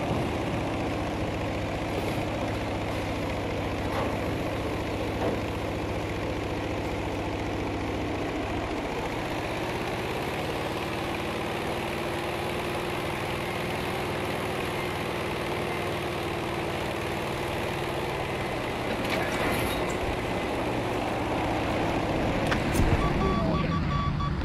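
A propeller plane's engine drones steadily, its pitch shifting as it climbs and dives.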